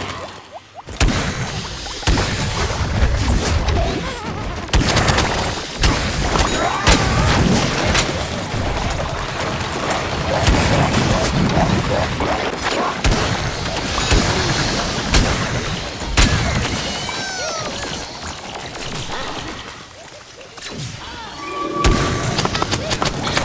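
A spray weapon hisses in bursts.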